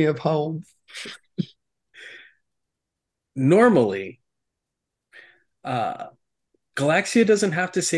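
A man talks with animation over an online call.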